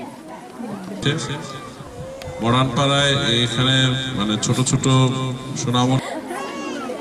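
A young man chants loudly into a microphone over a loudspeaker.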